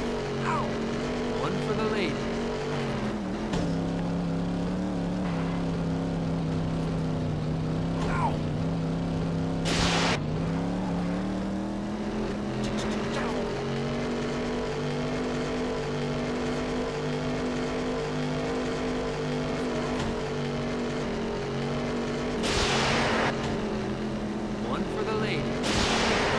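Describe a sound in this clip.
A racing car engine hums steadily, its pitch dropping and rising with speed.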